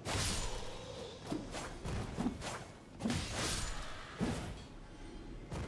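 A young man talks close to a microphone with animation.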